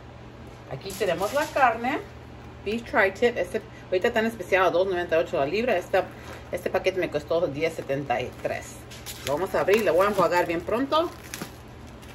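A plastic wrapper crinkles in handling.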